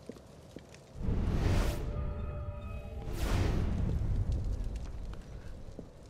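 A deep whoosh swells twice.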